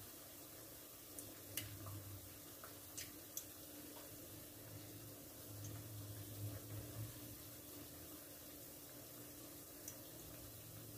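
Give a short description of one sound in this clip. Oil sizzles and bubbles steadily in a frying pan.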